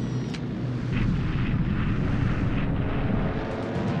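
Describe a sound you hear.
Aircraft engines drone during an air battle.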